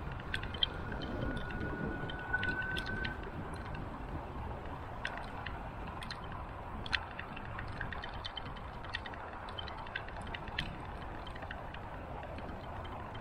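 Wind buffets and rumbles steadily outdoors.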